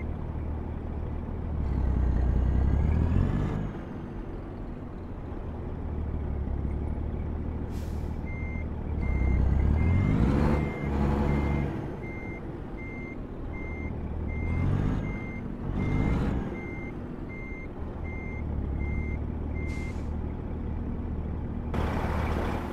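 A truck engine rumbles steadily and revs up several times.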